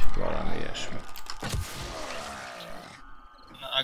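A zombie snarls and groans.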